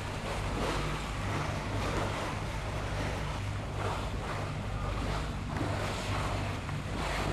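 Wind blows hard across open water.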